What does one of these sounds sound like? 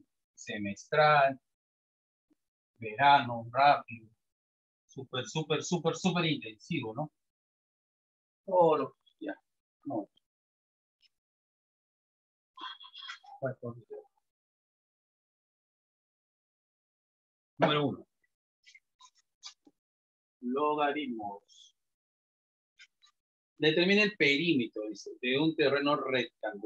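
A man talks calmly in short bursts, close by.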